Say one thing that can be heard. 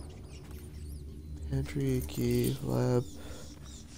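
Keys jingle briefly as they are picked up.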